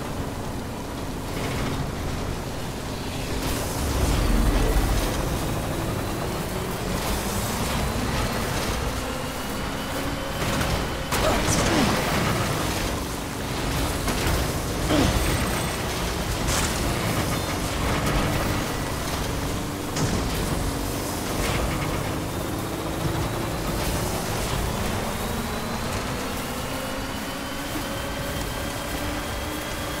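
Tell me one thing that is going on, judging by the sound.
A truck engine hums and revs steadily.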